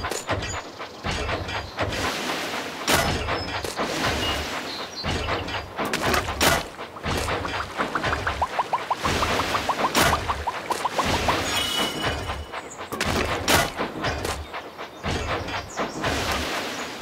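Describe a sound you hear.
A toy train chugs along a track.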